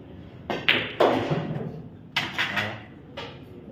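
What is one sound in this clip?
Billiard balls clack against each other.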